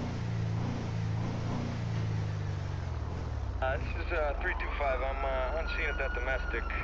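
A car engine hums steadily as the car drives along a street.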